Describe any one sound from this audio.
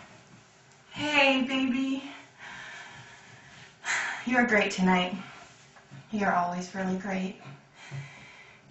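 A young woman speaks softly and playfully, close to the microphone.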